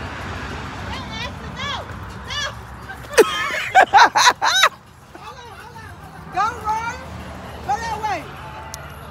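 A young child shouts and squeals outdoors.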